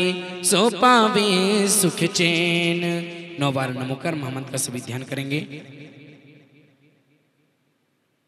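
A crowd of women sings together loudly, then fades away.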